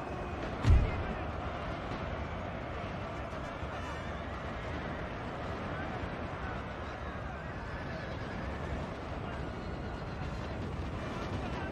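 Massed musket volleys crackle in the distance.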